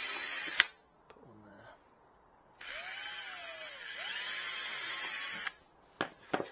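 A cordless drill whirs loudly in short bursts.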